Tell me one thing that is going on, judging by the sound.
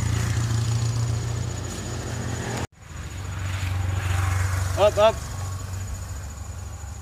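A motorbike engine hums as it passes along the road.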